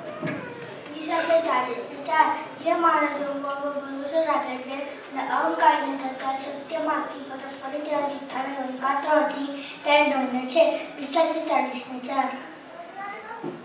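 A young boy sings into a microphone.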